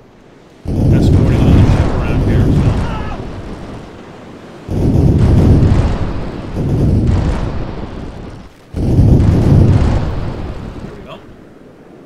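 Cannons boom in heavy rumbling volleys, one after another.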